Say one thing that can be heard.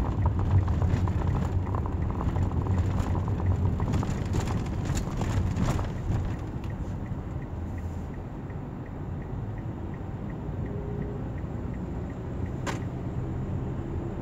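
A car engine hums steadily from inside the car while driving.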